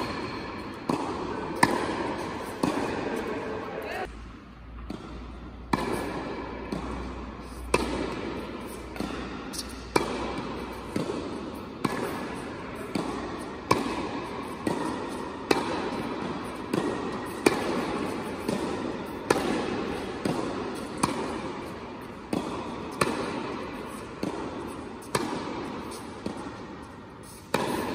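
Tennis balls bounce on the court.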